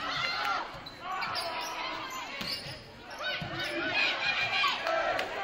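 Sneakers squeak sharply on a gym floor in a large echoing hall.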